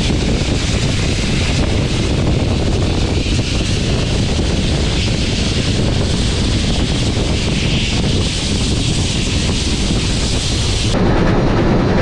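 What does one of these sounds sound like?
A steam locomotive chuffs loudly as it pulls away.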